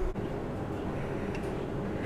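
Cans clink against each other in a fridge.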